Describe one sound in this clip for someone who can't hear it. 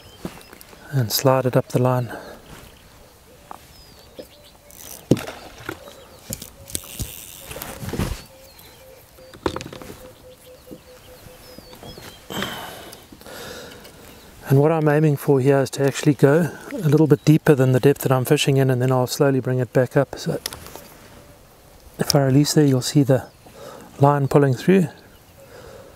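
A man talks calmly into a clip-on microphone, close by.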